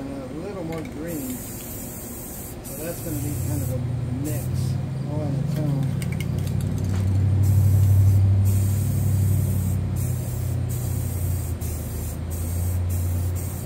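Aerosol spray cans hiss in short bursts.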